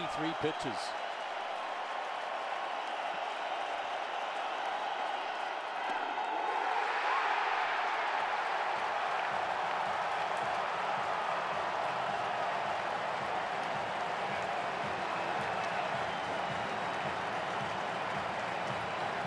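A large stadium crowd cheers and roars loudly, swelling louder partway through.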